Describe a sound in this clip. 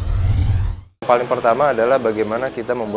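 A man speaks calmly into a microphone close by.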